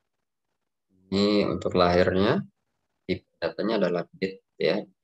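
A boy speaks calmly through a microphone on an online call.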